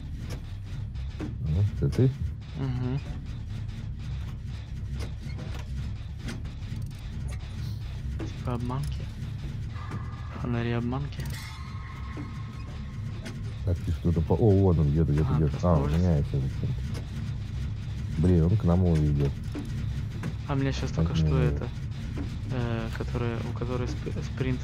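A generator engine rattles and clanks.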